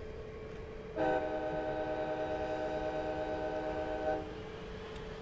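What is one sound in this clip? A train horn blares steadily.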